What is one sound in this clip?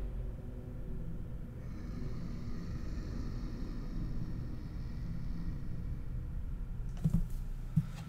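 A large beast growls low and deep.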